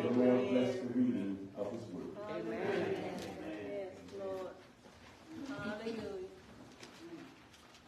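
A man speaks aloud nearby.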